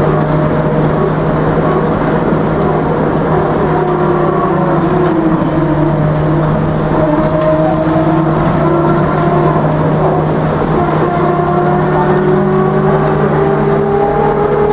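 A tram's electric motor hums and whines steadily as it rolls along.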